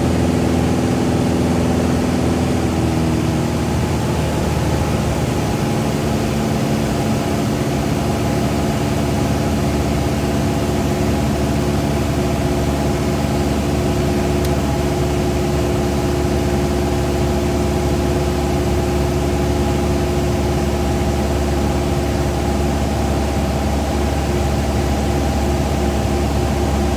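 A small propeller plane's engine drones loudly and steadily from inside the cabin, dipping slightly in pitch early on.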